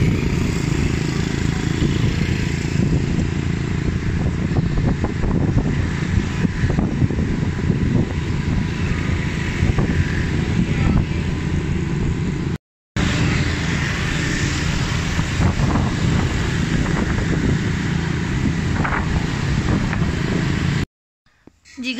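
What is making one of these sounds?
Traffic rumbles steadily close by, with motorbike engines droning.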